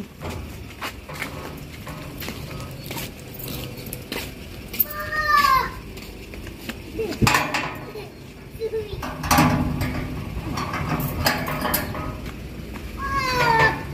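A metal gate latch clicks and rattles.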